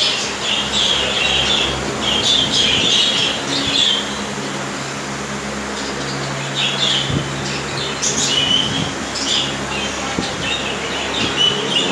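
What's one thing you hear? A fan hums steadily.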